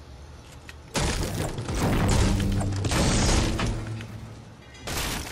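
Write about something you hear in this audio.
A pickaxe strikes wood with repeated heavy blows.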